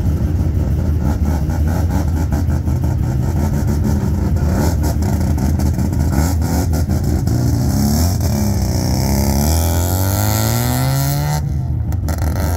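A car engine rumbles loudly and revs up as the car pulls away.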